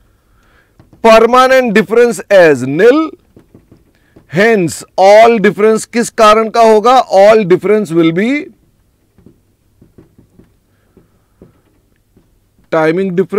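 A man explains calmly and clearly into a close microphone.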